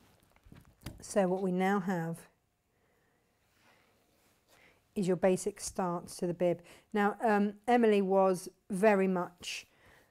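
A woman speaks calmly and clearly, close by.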